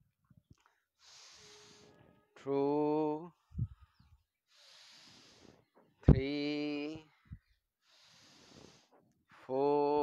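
A man breathes in deeply and audibly.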